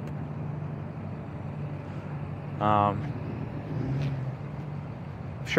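A diesel truck engine idles with a low, steady rumble.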